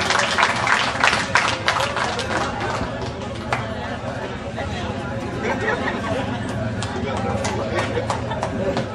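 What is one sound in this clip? Several men and women chat with one another.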